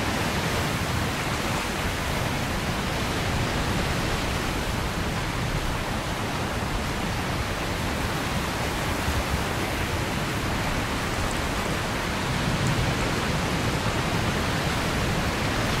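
A jet engine roars steadily nearby.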